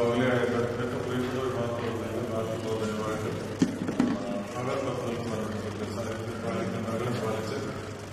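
A group of men sing a slow hymn together.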